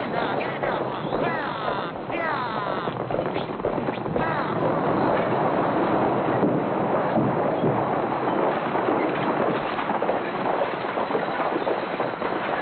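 Horses' hooves clatter on a dirt street.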